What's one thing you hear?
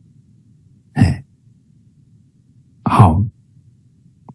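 A middle-aged man speaks briefly and calmly over an online call.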